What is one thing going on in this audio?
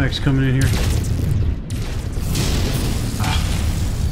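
Laser weapons fire in quick bursts.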